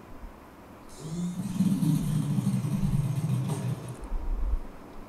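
A motorcycle engine rumbles nearby.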